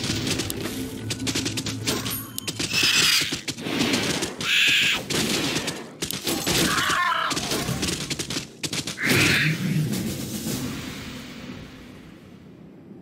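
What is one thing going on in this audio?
Spider creatures clash in a busy fight with sharp hits and screeches.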